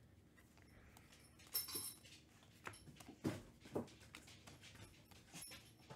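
Trading cards shuffle and flick against each other.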